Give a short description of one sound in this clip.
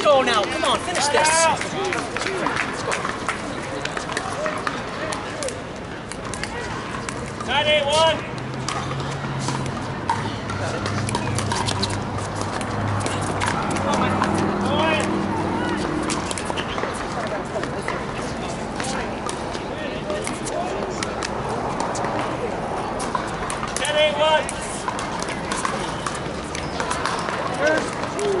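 People chatter and call out in the distance.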